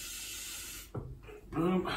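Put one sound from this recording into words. A coffee grinder whirs briefly.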